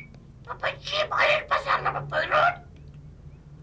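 A parrot squawks loudly.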